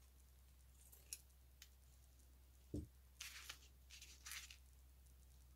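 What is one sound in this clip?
Ribbon rustles softly as hands handle it.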